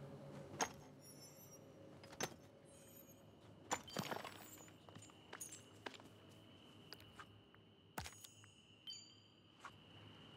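Bright chimes twinkle as items are collected.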